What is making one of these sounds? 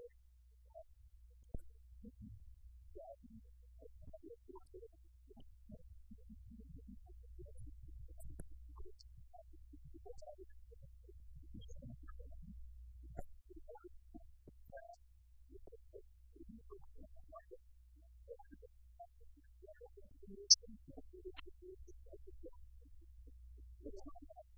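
A man speaks calmly into a microphone in a quiet room.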